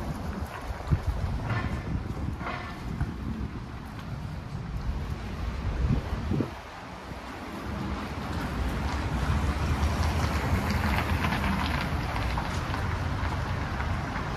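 Car traffic rumbles steadily along a city street outdoors.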